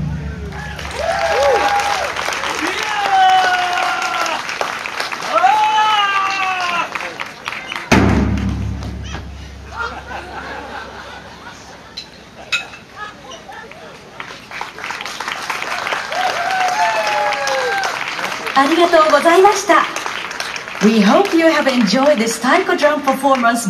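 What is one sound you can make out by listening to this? Young women shout and chant loudly outdoors.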